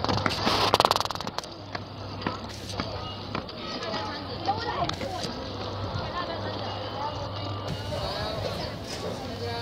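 Men and women talk quietly in the distance outdoors.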